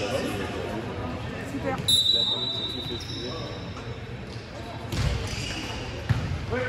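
Young men call out to each other in an echoing hall.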